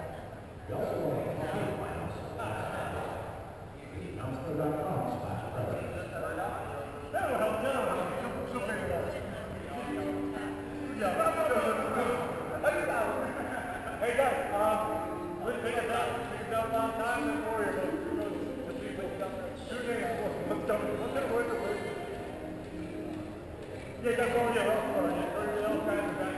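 A group of men talk and chatter at a distance in a large echoing hall.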